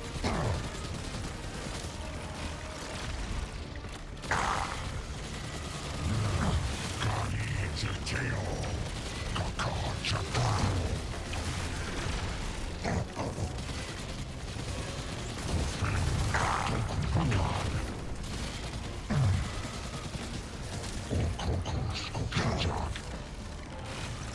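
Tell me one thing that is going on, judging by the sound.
Heavy gunfire blasts out in bursts.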